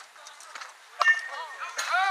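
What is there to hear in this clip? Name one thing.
A softball smacks sharply into a catcher's mitt.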